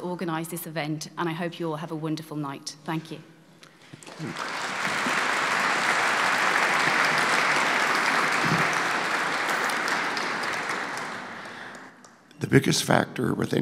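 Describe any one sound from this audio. A man speaks to an audience through a microphone in a large echoing hall.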